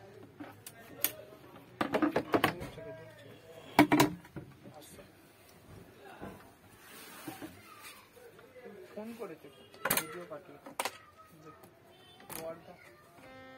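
Wooden panels of a harmonium knock and clatter as they are handled.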